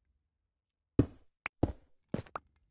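A pickaxe breaks a stone block with a crumbling crack.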